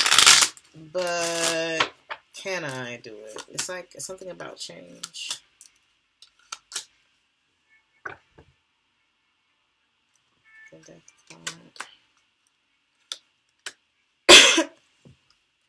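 A deck of cards is shuffled in the hands.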